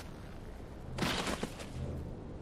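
A heavy club strikes a body with a thud.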